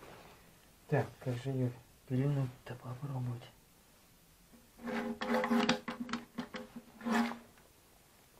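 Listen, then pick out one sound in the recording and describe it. A cordless reciprocating saw runs in short bursts.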